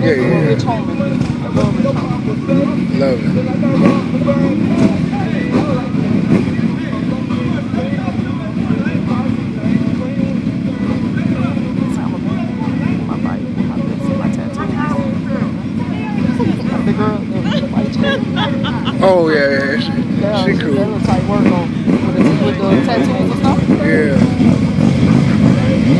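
Several motorcycle engines idle with a steady low rumble.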